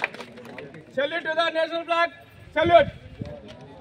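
A group of men sings together in unison.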